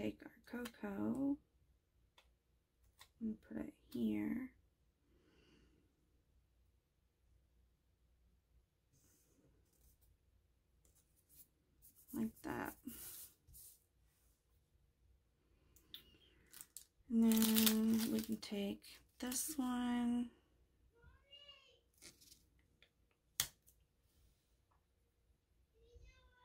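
Paper stickers rustle and crinkle softly as they are peeled and pressed down.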